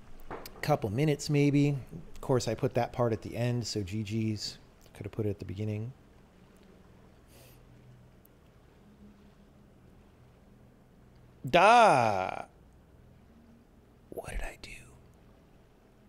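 A man talks casually into a close microphone, pausing now and then.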